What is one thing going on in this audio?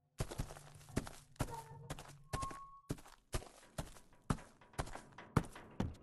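Footsteps thud quickly and steadily on hard ground.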